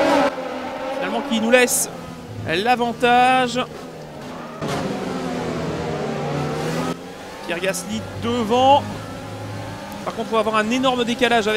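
A racing car engine whines at high revs.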